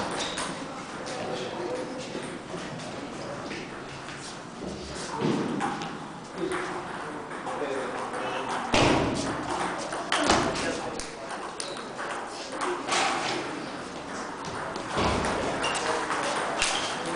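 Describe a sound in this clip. A ping-pong ball clicks back and forth off paddles and a table in an echoing hall.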